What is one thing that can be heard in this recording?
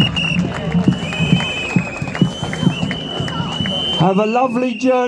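A crowd claps and cheers outdoors.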